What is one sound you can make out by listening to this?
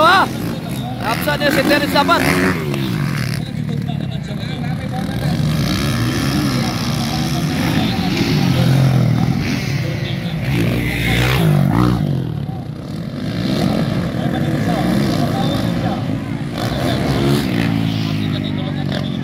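Motorcycle engines rev and whine loudly as dirt bikes race over jumps.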